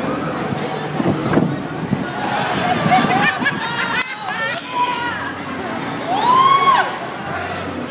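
A crowd whistles and shouts loudly in bursts.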